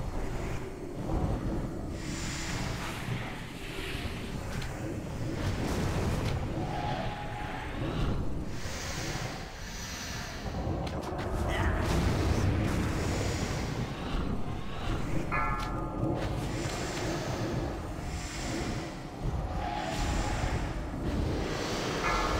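Magic spells whoosh and crackle amid a noisy battle.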